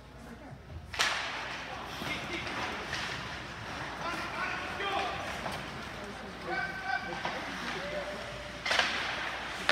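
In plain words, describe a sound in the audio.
Spectators talk and call out in an echoing rink.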